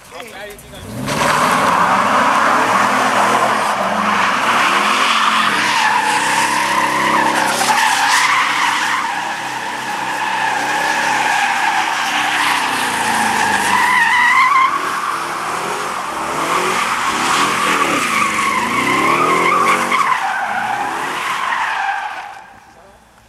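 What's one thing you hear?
A car engine roars and revs hard close by.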